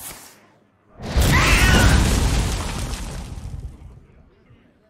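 A loud rumbling blast erupts and slowly fades.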